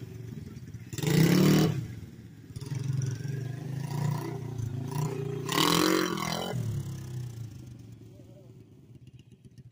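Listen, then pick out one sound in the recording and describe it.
A small motorbike roars loudly as it passes close by, then fades into the distance.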